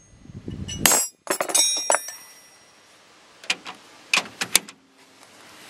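Metal tools clink and clatter.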